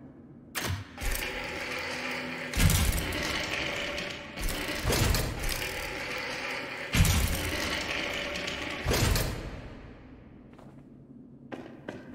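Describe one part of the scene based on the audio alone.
A heavy metal crank grinds and creaks as it is turned.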